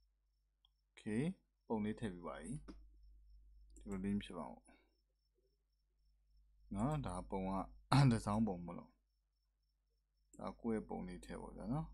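A young man talks calmly into a close microphone, in bursts with pauses.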